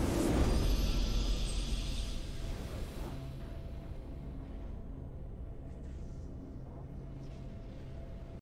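A triumphant game fanfare plays.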